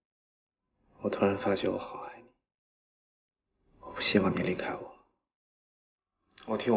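A young man speaks softly and closely.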